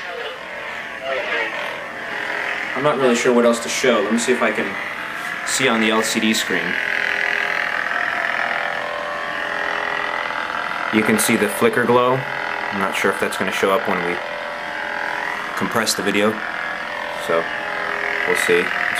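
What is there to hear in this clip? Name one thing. A toy light sword hums steadily.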